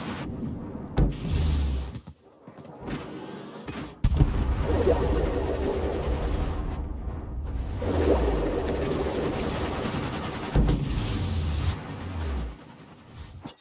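Heavy naval guns fire with deep booms.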